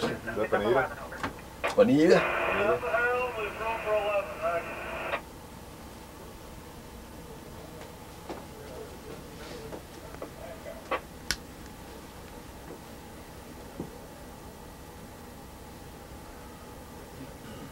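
A train engine rumbles low and steady.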